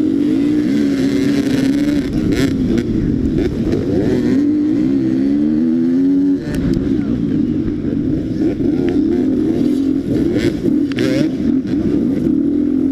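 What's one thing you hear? Several dirt bike engines whine nearby.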